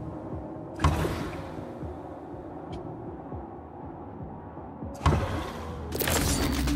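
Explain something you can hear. A magic spell bursts with a sharp whoosh.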